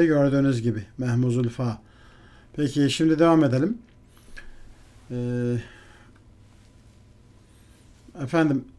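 A middle-aged man speaks calmly and clearly into a close microphone, in short phrases with pauses.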